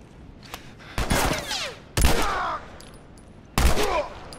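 A pistol fires loud shots that echo.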